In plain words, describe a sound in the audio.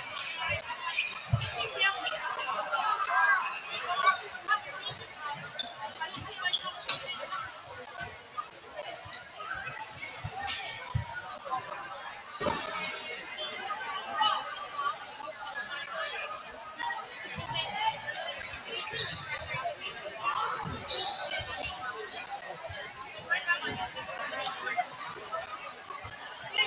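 A crowd of young people chatter throughout a large echoing gym.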